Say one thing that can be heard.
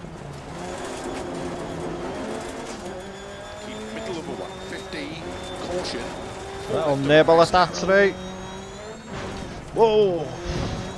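A rally car engine revs and roars steadily.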